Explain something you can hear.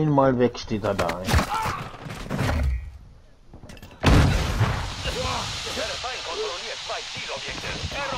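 A rifle fires in bursts.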